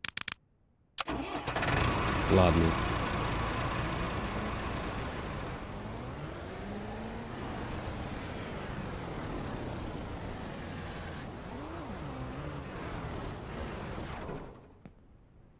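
A small tractor engine starts and runs with a steady rumble, its pitch rising and falling.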